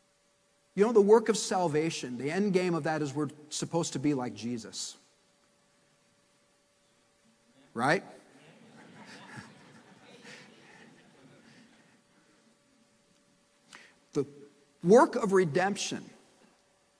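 A middle-aged man speaks with emphasis through a microphone, pausing at length.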